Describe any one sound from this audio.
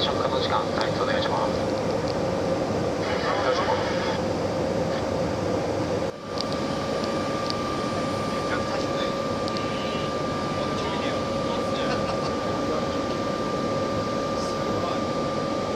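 An aircraft engine drones steadily from inside the cabin.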